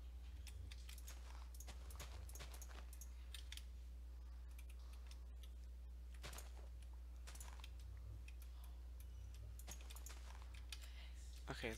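Leaves rustle and crunch in short bursts as they are broken one after another.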